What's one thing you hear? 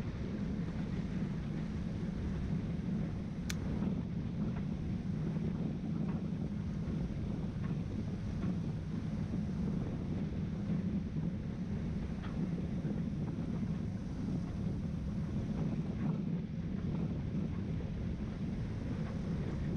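A boat engine hums low and steady.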